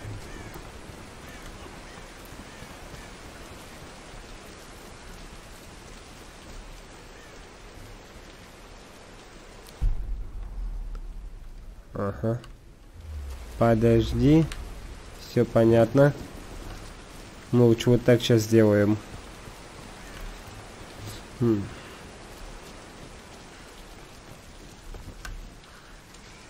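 Heavy rain falls steadily outdoors.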